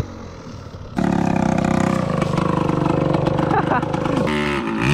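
A motorcycle engine idles close by.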